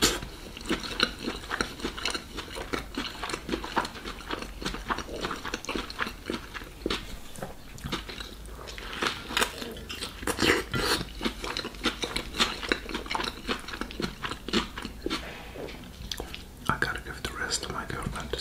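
A man chews food noisily close by.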